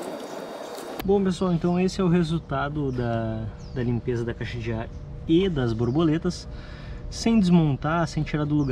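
A man speaks calmly close by, explaining.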